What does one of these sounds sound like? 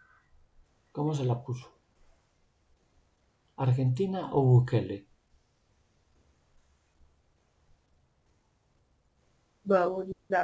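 A middle-aged man speaks calmly over an online call, in short bursts.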